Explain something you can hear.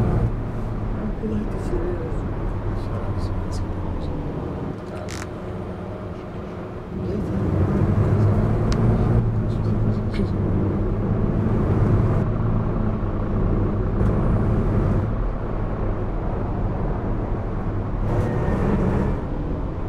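A bus engine hums steadily and grows louder as the bus speeds up.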